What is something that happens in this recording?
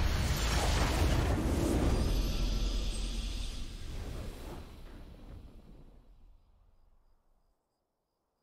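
A triumphant musical fanfare swells and slowly fades out.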